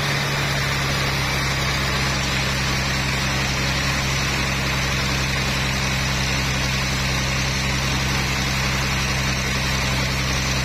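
A band saw rips steadily through a large log with a loud, droning whine.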